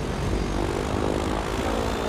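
A plane's wheels bump over rough grass.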